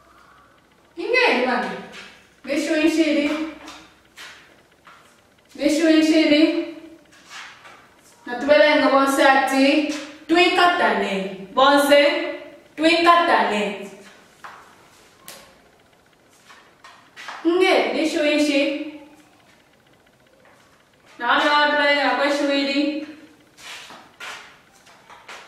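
A woman speaks clearly and slowly, close by, in short phrases with pauses.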